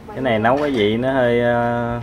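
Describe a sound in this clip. A ladle scrapes and clinks against a metal pot.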